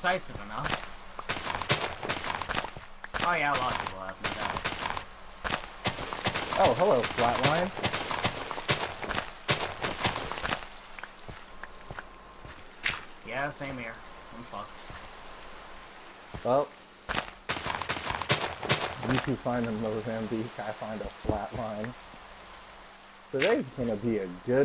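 A shovel digs into dirt with soft, repeated crunching thuds.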